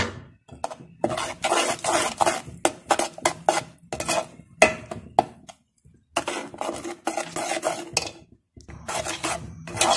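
Food sizzles and bubbles in hot oil.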